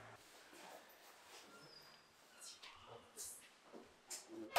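Footsteps climb stairs.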